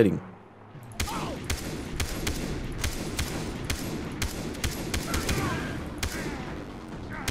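A rifle fires a rapid series of loud shots.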